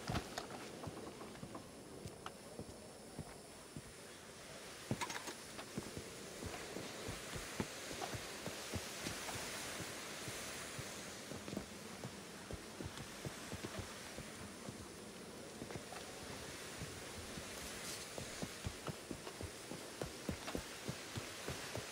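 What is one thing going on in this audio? Boots thud steadily on stone as a man walks and runs.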